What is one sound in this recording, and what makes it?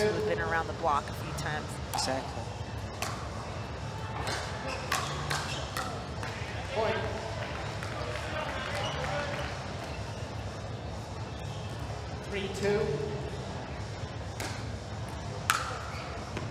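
Paddles pop against a plastic ball in a quick rally.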